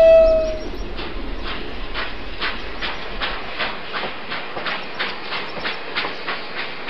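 A toy train's wheels clack rhythmically along a track.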